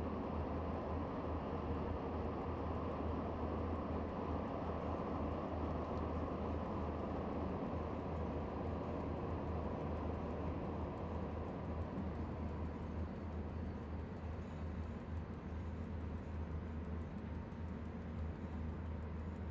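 A locomotive engine rumbles steadily while slowing down.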